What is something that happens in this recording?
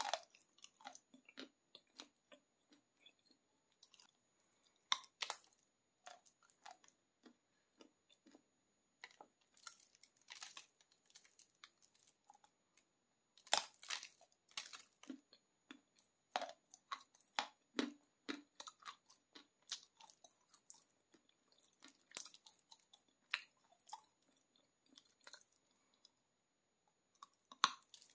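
A woman bites and crunches hard chocolate close to a microphone.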